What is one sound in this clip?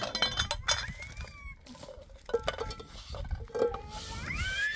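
Metal pans clink and clatter against each other on a hard floor.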